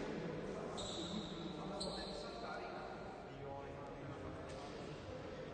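Young men talk quietly among themselves in a large echoing hall.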